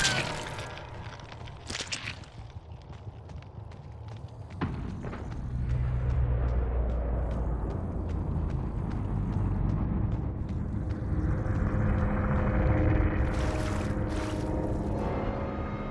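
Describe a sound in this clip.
Heavy footsteps thud steadily on a hard floor.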